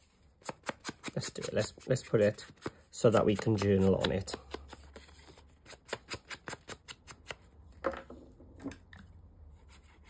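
Paper cards rustle and tap as hands handle them.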